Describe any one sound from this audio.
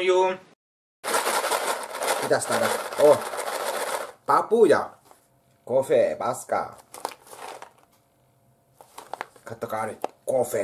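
A plastic coffee bag crinkles and rustles in a hand.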